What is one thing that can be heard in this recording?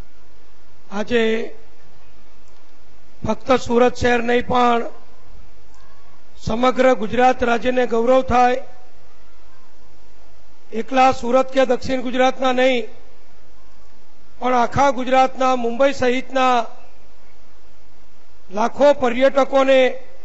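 An elderly man speaks loudly into a microphone over a loudspeaker, in short bursts with pauses.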